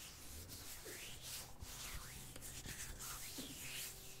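Hands rub together with a soft swishing sound.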